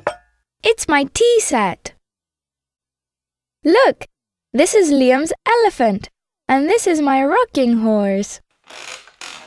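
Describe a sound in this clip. A young girl speaks cheerfully.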